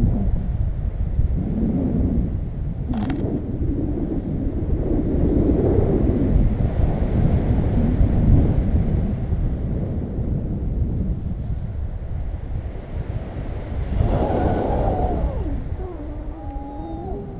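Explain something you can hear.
Wind rushes past the microphone in flight.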